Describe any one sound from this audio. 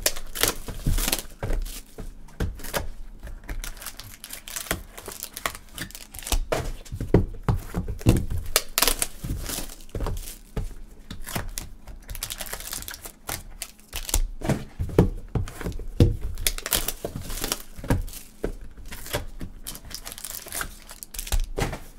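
Gloved hands rustle and crinkle plastic wrappers close by.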